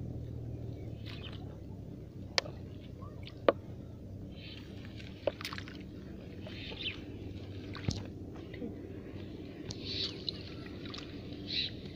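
A plastic bottle knocks and crackles under hands.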